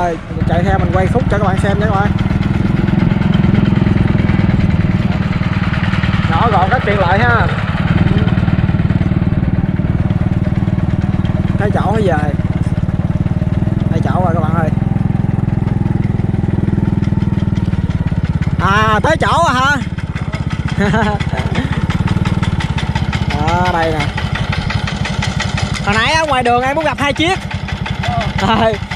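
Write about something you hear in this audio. A small diesel engine chugs steadily close by.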